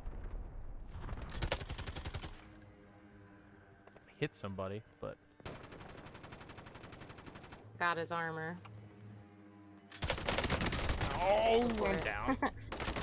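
Gunshots fire in rapid bursts in a video game.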